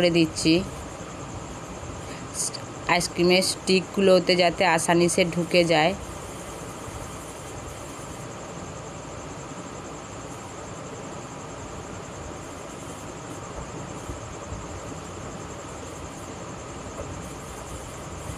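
A wooden stick pokes through aluminium foil.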